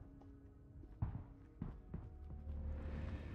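Heavy footsteps clang on a metal ramp.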